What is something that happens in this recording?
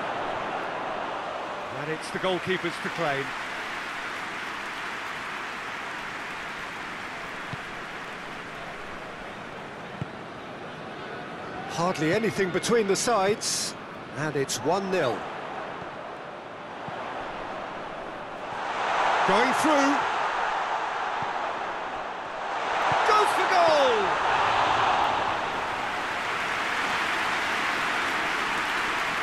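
A stadium crowd murmurs steadily and swells into cheers now and then.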